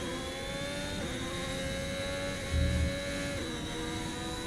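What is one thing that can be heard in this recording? A racing car engine drops in pitch with each gear change.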